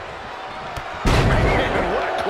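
A body slams heavily onto a wrestling mat with a loud thud.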